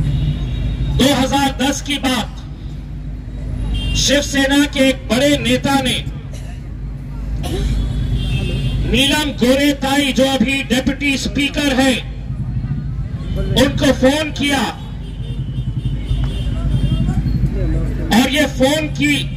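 A middle-aged man speaks with force into a microphone, heard through loudspeakers in a reverberant room.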